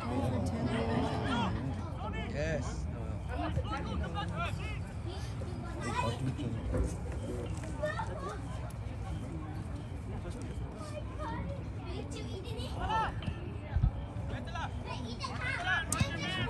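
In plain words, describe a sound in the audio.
Spectators chatter and cheer nearby.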